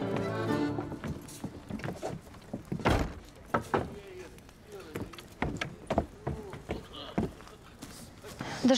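Footsteps knock on wooden stairs.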